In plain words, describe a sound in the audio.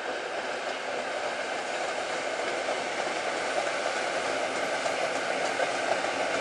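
A train rumbles across a bridge, growing louder.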